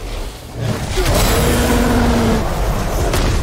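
A large beast roars deeply.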